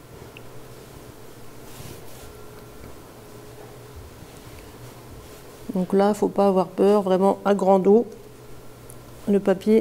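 A brush swishes softly across paper.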